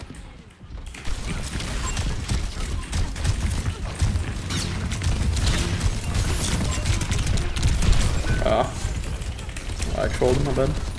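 Weapons fire in rapid bursts with heavy booming blasts.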